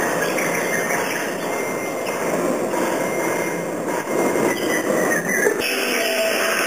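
Musicians play a dense, clattering piece of live music in a large echoing hall.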